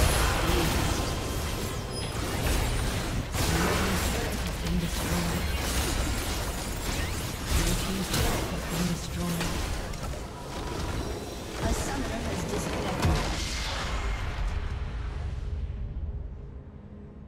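Game spells crackle, whoosh and clash in a busy battle.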